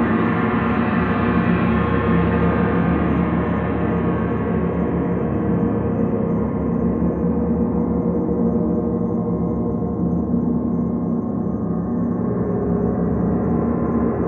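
A large gong rumbles and shimmers in a steady, swelling drone.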